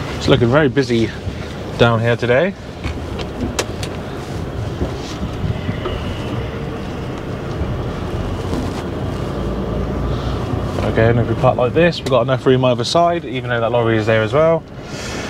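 A man talks calmly and close into a microphone.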